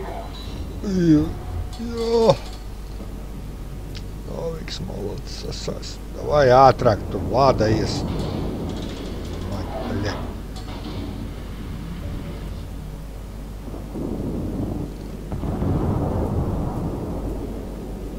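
Heavy naval guns fire in booming blasts.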